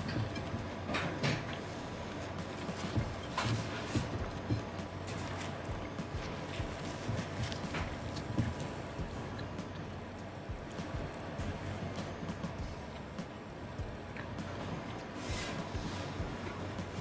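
Pizza crust crunches as a young man tears it.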